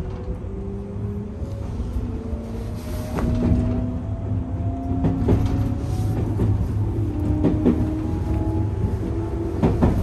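An electric train motor hums and whines, rising in pitch as the train speeds up.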